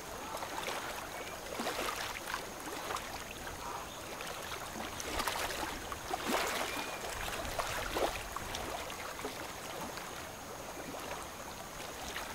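Water swishes against a ship's bow.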